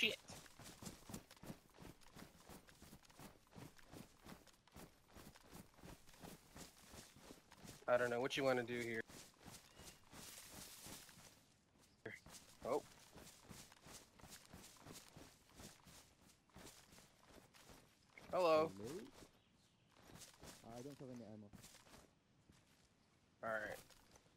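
Quick footsteps rustle through grass.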